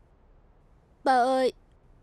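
A young woman speaks with emotion nearby.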